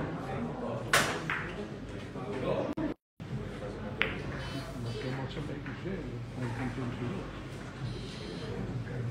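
Billiard balls click against each other and knock off the cushions.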